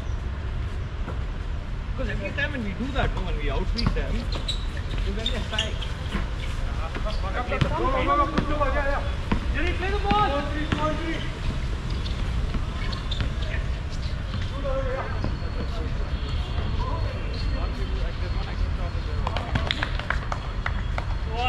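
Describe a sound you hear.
Sneakers squeak and patter on a hard court.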